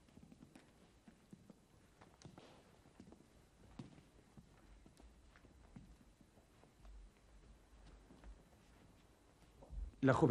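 Footsteps tap softly on a hard floor in an echoing hall.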